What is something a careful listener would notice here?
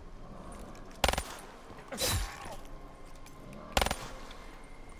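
Heavy blows land with sharp thuds.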